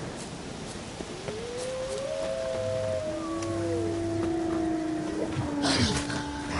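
Wolves howl nearby.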